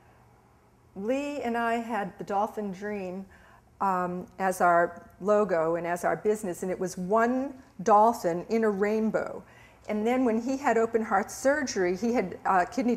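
A middle-aged woman speaks calmly and with feeling, close to a microphone.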